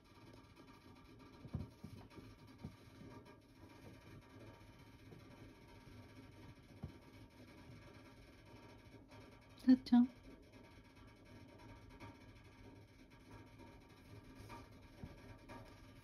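A hand softly strokes a cat's fur.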